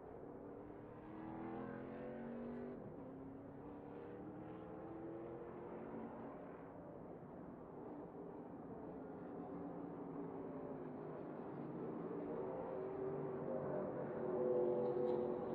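Racing truck engines roar in the distance.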